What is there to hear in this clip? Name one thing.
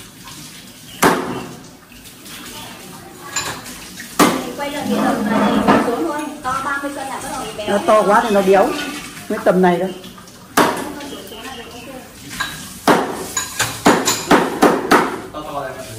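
Knocks and clatter of dishes ring out now and then.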